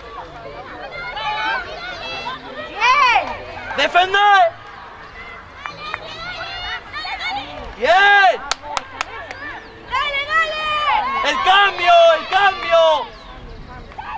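Spectators shout and cheer loudly nearby, outdoors.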